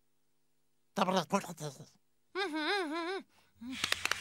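A small cartoon creature babbles in a high, squeaky, warbling voice.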